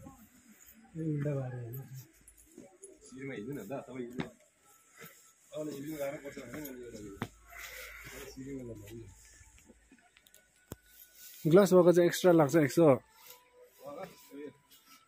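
Men talk nearby in short exchanges.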